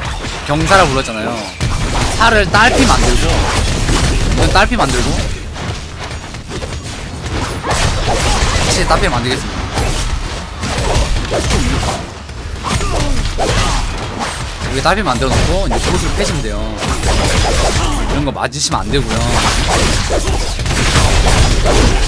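Game spell effects whoosh and clash.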